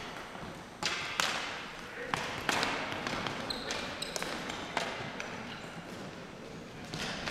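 Players run with quick footsteps on a hard floor.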